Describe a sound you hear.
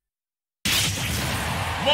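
A powerful energy blast roars with a loud whoosh.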